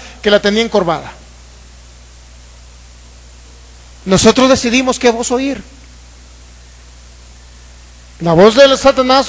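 A man speaks with animation into a microphone over loudspeakers, pausing between phrases.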